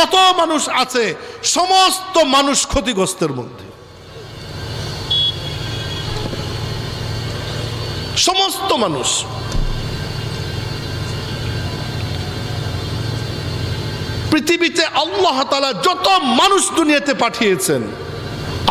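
A man preaches loudly into a microphone, his chanting voice amplified through loudspeakers.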